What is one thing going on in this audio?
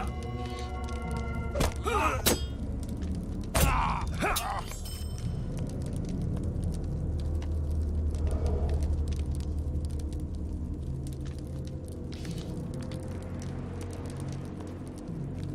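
A fire crackles steadily.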